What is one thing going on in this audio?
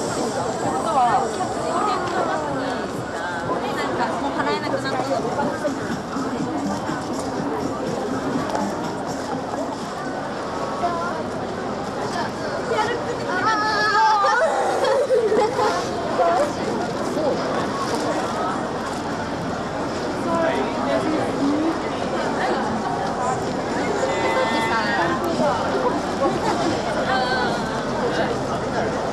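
A busy crowd chatters all around outdoors.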